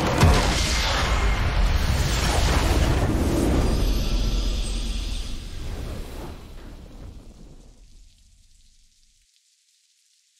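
A triumphant fanfare swells and then fades to silence.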